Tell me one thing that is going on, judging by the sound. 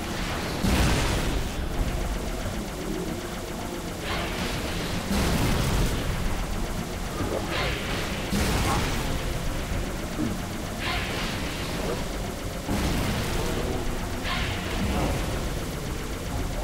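A hovering vehicle's engine hums steadily.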